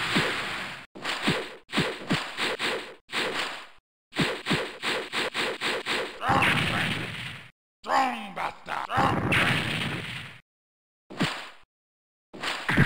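Blades swish and strike in quick, repeated bursts of arcade fighting-game sound effects.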